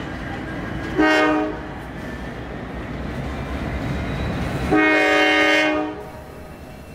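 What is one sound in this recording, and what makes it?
A locomotive horn sounds two loud blasts.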